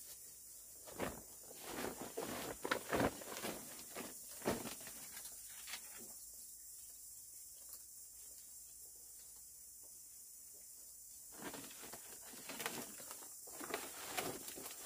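A large paper sack crackles and rustles as it is lifted and shaken.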